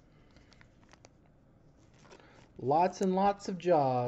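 A plastic sleeve crinkles and rustles between fingers.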